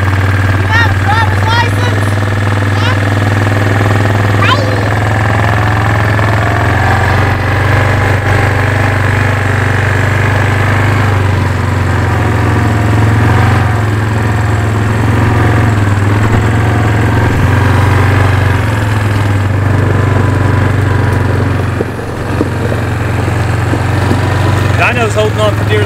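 A small off-road quad bike engine runs with a steady low hum.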